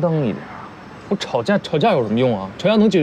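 A man answers sharply.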